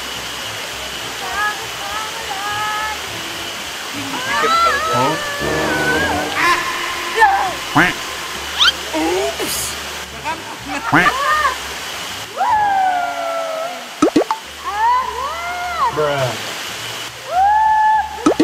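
A young man talks and laughs nearby.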